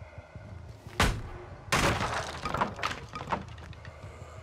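Wooden boards crash and splinter as something is smashed apart.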